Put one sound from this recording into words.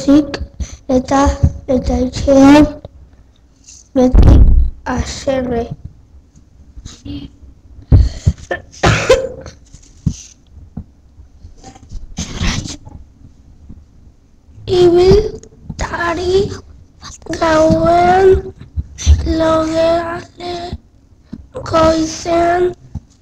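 Children speak in turns into microphones close by, calmly and with animation.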